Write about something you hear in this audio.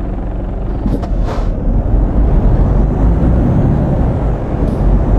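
A truck engine grows louder as the truck pulls away.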